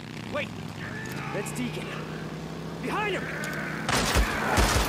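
A young man shouts urgently.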